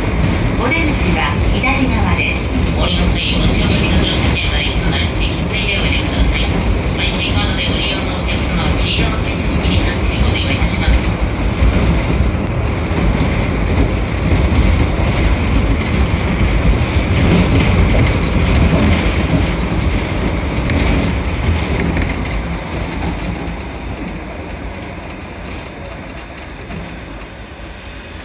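A suspended monorail car rumbles and whines along its track, heard from inside the cab.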